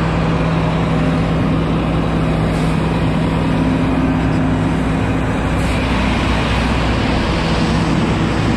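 A diesel engine idles.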